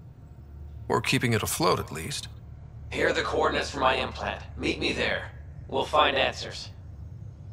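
A man with a deep voice speaks through a radio.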